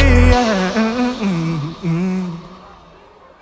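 A young man sings into a microphone over loudspeakers, with reverberation.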